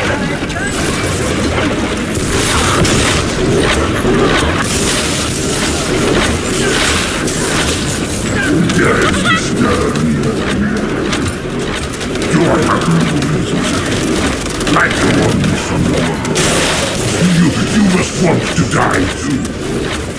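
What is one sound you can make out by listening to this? Energy blasts fire and crackle in rapid bursts.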